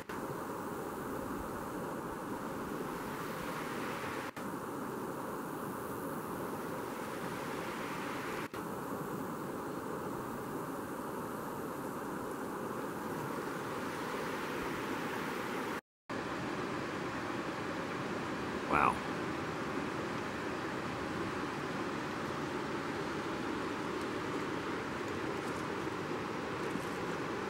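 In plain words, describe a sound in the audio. A river flows and burbles steadily outdoors.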